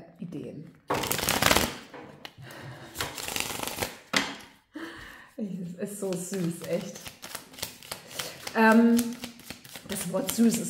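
Playing cards riffle and flutter as they are shuffled.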